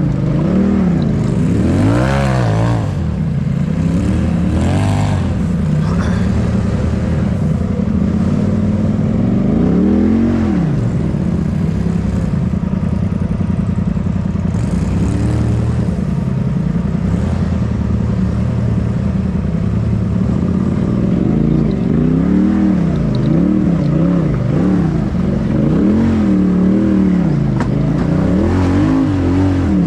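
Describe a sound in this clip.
Tyres grind and crunch over loose rocks.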